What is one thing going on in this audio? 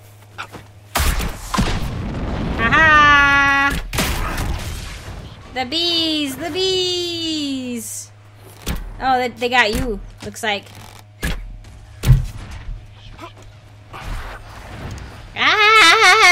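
Magic spells burst and crackle during a fight.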